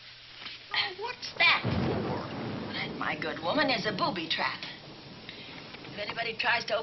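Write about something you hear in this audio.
A second woman speaks nearby.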